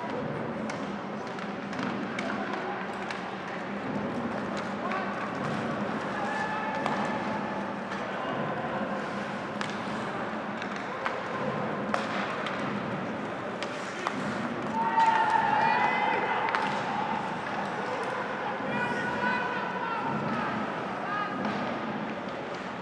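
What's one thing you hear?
Hockey sticks click and clack against the puck.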